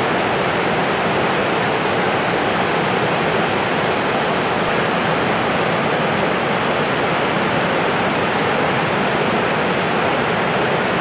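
A large waterfall roars steadily, crashing into a pool below.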